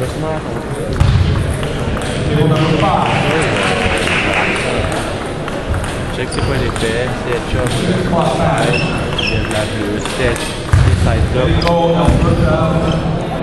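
A young man talks calmly close by in a large echoing hall.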